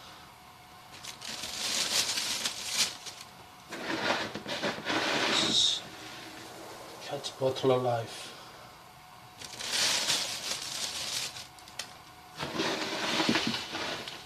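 Things rattle and scrape as a man rummages in a plastic bin.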